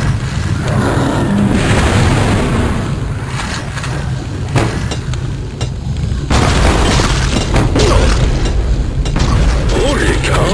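Gunfire rattles rapidly in bursts.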